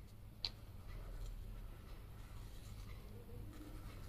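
A marker squeaks softly across paper.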